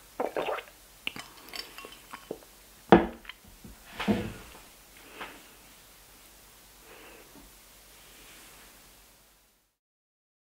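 A young woman whispers softly close to a microphone.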